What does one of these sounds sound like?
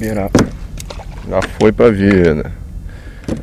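Water splashes beside a kayak.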